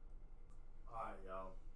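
A whooshing chime sounds.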